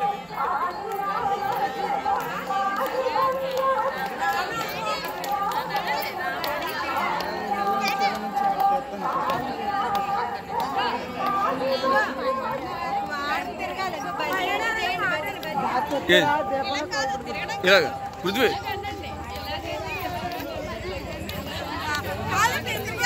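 A crowd of women sings together nearby.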